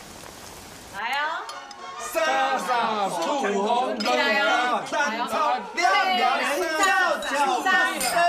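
Several men and women chat with animation close by.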